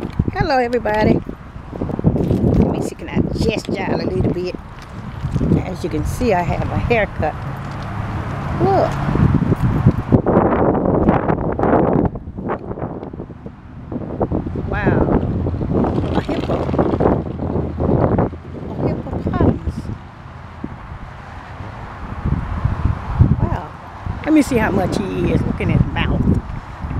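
A woman talks close to the microphone.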